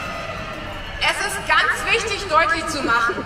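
A man speaks loudly through a loudspeaker, echoing across an open square.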